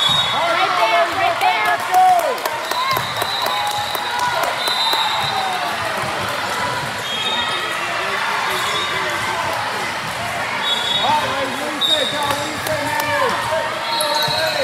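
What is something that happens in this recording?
Many voices chatter and call out across a large echoing gym.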